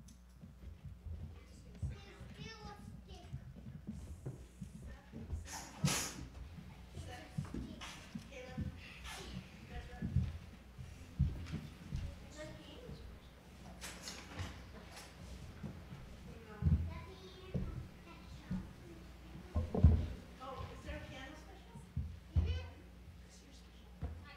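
Children speak lines on a stage, heard through a microphone in an echoing hall.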